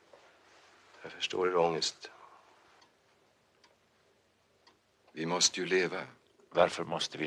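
A middle-aged man speaks calmly and quietly, close by.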